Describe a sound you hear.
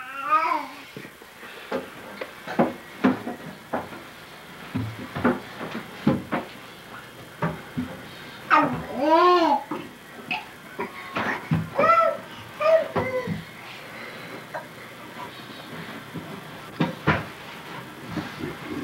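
A baby's hands pat softly on carpeted steps.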